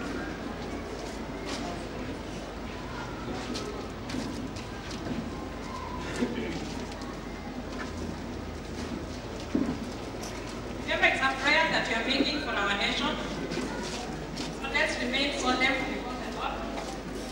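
A crowd murmurs and talks in a large echoing hall.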